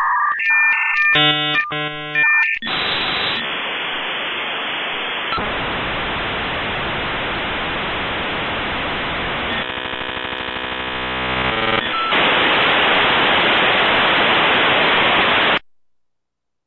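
A modem screeches, hums and hisses loudly while it connects.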